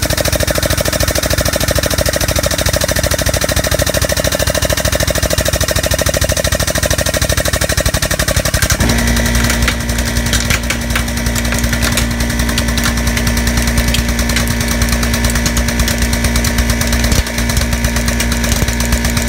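A hydraulic press motor hums loudly and steadily.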